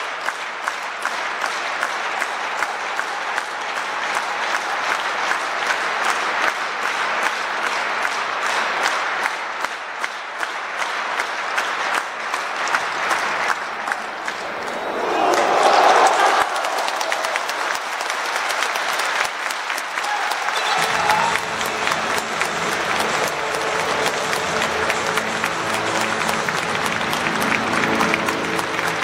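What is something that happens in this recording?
A large stadium crowd chants and sings steadily.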